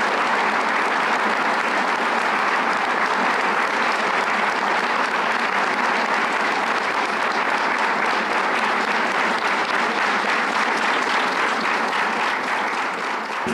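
A large crowd murmurs and chatters loudly in an echoing hall.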